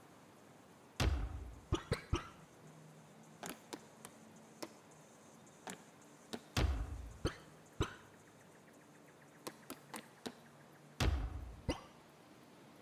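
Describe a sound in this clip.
A deep whooshing swell sounds as a menu panel opens and closes.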